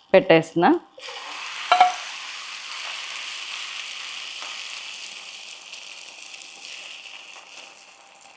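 Egg batter sizzles loudly in a hot pan.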